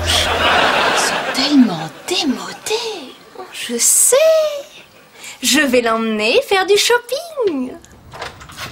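A young woman makes exaggerated, sing-song vocal sounds nearby.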